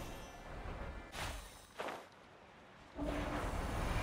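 A magical seal activates with a deep glowing whoosh.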